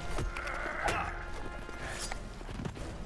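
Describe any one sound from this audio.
A man grunts and groans while struggling close by.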